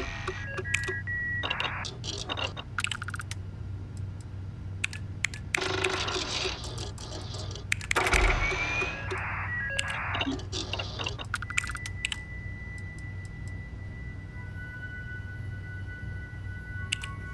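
Short electronic interface clicks and chimes sound now and then.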